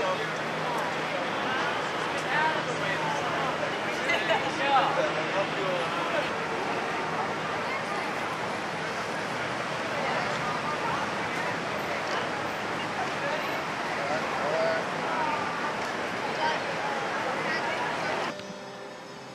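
A crowd murmurs and chatters outdoors on a city street.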